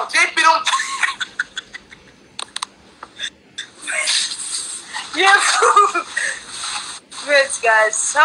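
A young woman laughs over an online call.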